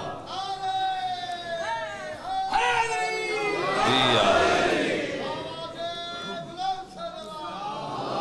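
A man speaks with fervour into a microphone, heard through loudspeakers in an echoing hall.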